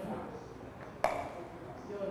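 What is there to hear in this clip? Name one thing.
A cricket bat strikes a ball with a sharp crack.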